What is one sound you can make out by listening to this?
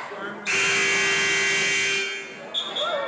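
A whistle blows loudly in a large echoing gym.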